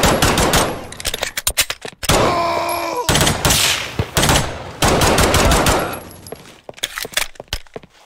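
A pistol's magazine clicks out and in during a reload.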